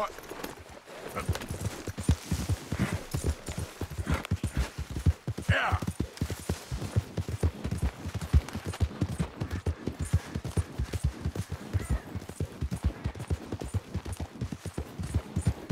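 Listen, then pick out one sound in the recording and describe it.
Horse hooves thud steadily at a gallop on soft ground.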